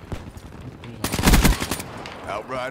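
A gun fires a quick rattling burst of shots.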